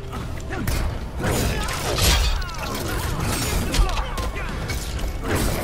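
Heavy punches and kicks land with loud thuds and whooshes.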